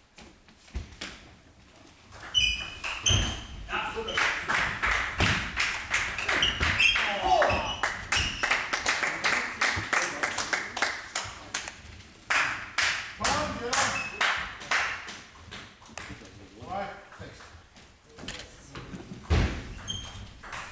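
A ping-pong ball clicks quickly back and forth off paddles and a table in an echoing hall.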